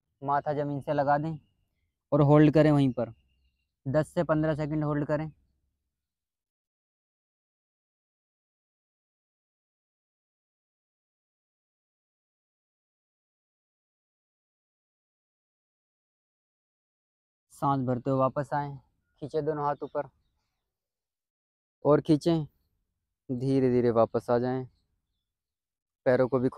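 A woman gives calm instructions, with long pauses.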